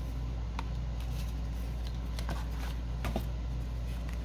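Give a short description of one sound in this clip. Paper pieces rustle as fingers sort through them.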